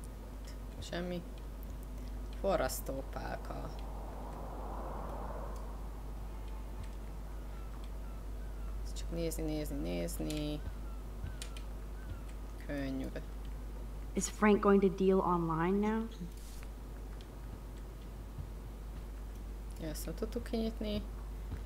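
A young woman talks calmly into a close microphone.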